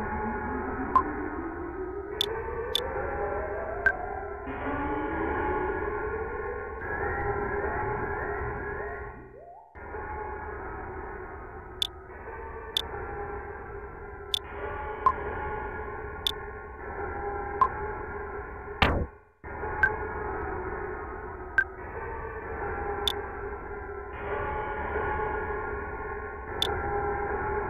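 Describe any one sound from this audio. Short menu blips sound as a cursor moves.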